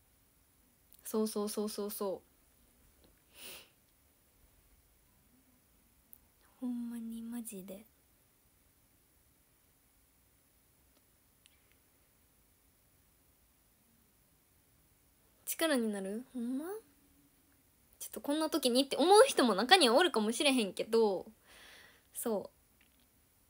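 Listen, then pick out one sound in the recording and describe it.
A young woman speaks softly and brightly close to a microphone, in short bursts with long pauses.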